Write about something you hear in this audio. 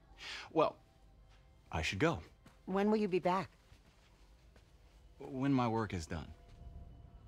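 A man speaks calmly and warmly.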